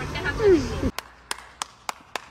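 A man claps his hands slowly.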